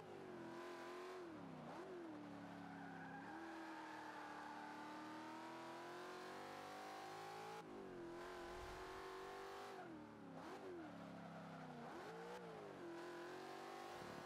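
A car engine roars at high revs, rising and dropping in pitch as it shifts gears.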